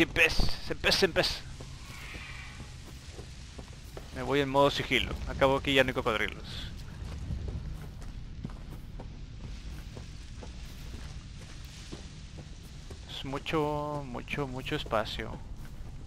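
Footsteps crunch on a stony path.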